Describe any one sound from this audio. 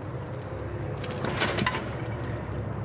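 A heavy tractor rolls over and lands with a splash in muddy water.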